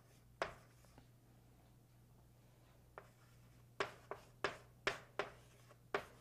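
Chalk taps and clicks sharply against a blackboard.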